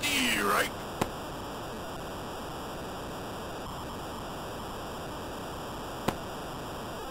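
A ball smacks sharply into a catcher's mitt.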